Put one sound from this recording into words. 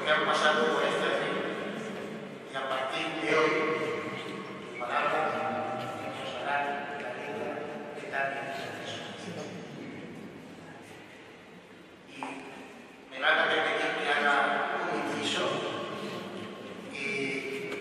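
A man sings slowly, echoing in a large hall.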